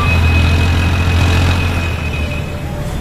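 A truck drives past close by.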